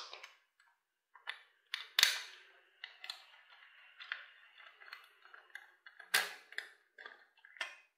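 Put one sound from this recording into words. A small metal tool scrapes and pries at a plastic cover.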